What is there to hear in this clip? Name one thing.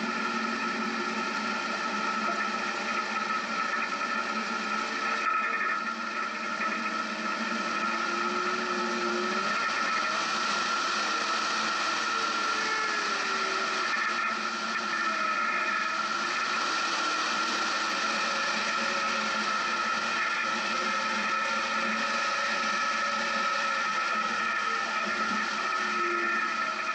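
An off-road vehicle's engine drones and revs up and down.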